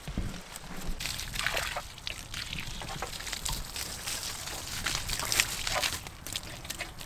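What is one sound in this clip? Water pours from a watering can onto soil.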